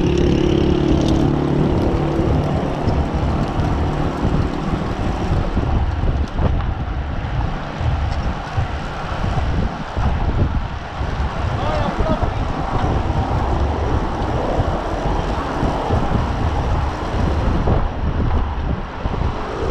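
Bicycle tyres hum on a paved road.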